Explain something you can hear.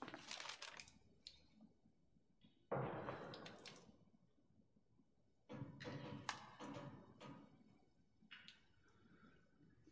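A sheet of paper rustles as it is turned over.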